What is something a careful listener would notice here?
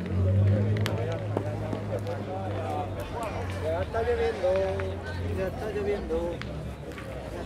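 Several men talk nearby outdoors.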